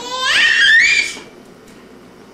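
A baby squeals loudly and happily close by.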